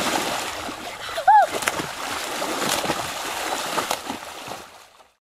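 A child splashes and thrashes in water close by.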